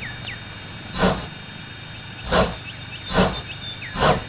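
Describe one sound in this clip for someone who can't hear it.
A steam locomotive chuffs heavily as it starts to move.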